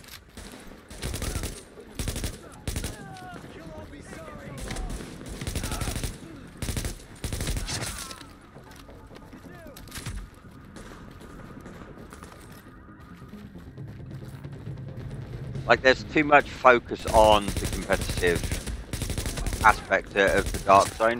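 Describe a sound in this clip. Gunfire rings out in short, sharp bursts.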